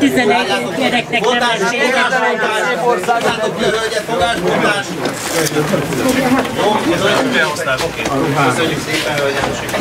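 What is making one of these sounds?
Several men and women shout and argue agitatedly at close range.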